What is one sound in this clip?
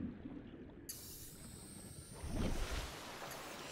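Water splashes as a swimmer breaks the surface.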